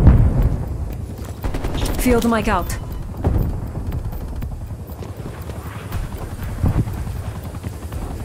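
An assault rifle fires shots.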